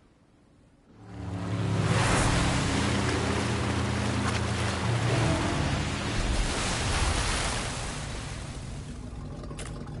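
Water sprays and splashes around a speeding jet ski.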